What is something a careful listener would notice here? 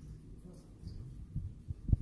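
Water trickles steadily down a wall fountain.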